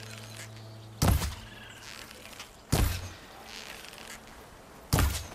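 A bow string snaps as arrows are loosed with sharp thuds.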